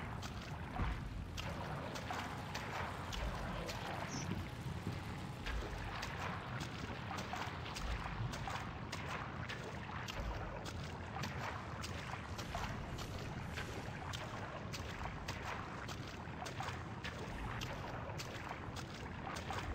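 Footsteps splash steadily through shallow liquid.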